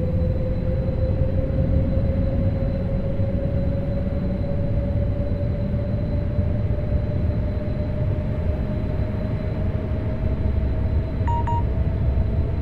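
An electric train motor whines, its pitch rising slowly as it speeds up.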